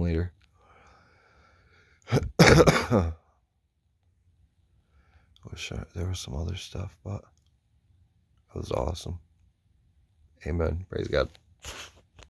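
A middle-aged man speaks softly and close by, in short bursts.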